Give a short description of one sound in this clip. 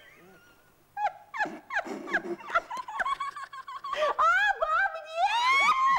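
An older woman laughs and speaks loudly with animation.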